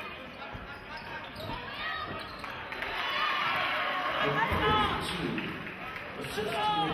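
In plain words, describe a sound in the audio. Sneakers squeak sharply on a hardwood court in a large echoing gym.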